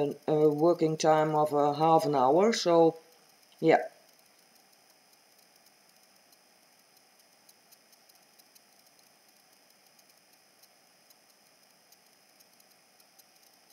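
Thick liquid pours softly from a cup.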